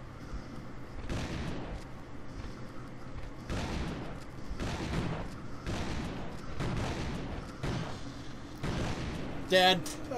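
A shotgun fires several times in a row.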